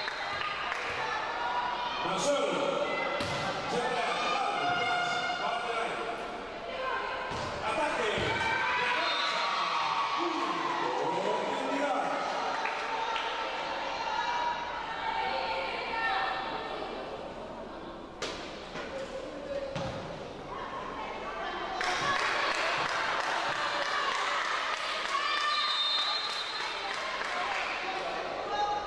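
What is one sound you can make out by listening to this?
Players shout and call out to each other in a large echoing hall.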